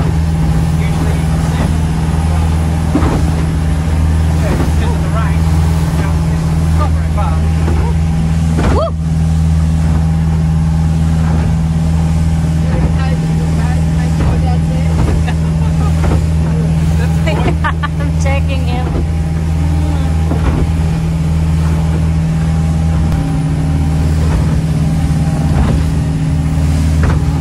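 A boat engine drones steadily and loudly.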